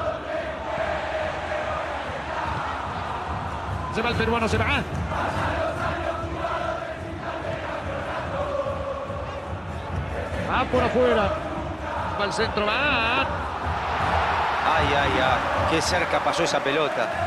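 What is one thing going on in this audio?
A large stadium crowd sings and chants loudly throughout.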